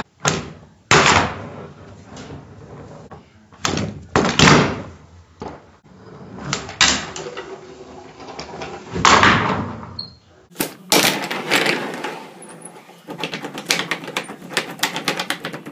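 A handboard clacks down onto a wooden table.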